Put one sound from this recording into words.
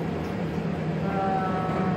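A washing machine beeps as its buttons are pressed.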